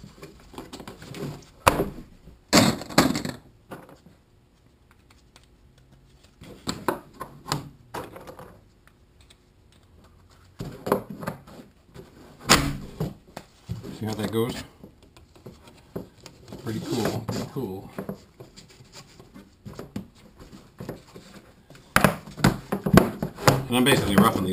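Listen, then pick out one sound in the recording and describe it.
Plastic pipe fittings knock and clatter against a workbench.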